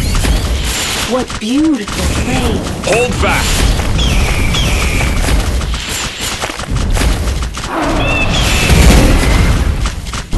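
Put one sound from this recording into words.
Magic blasts whoosh and burst.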